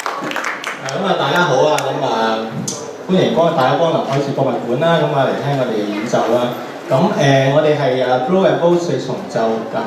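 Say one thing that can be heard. A young man speaks to an audience through a microphone.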